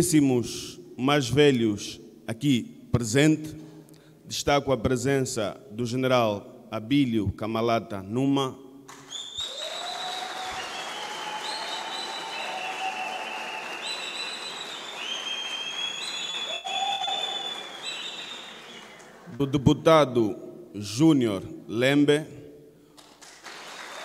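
A man speaks firmly into a microphone over loudspeakers.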